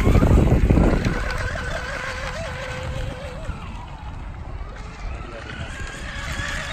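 A small boat motor whines at high pitch as the boat races across the water and fades into the distance.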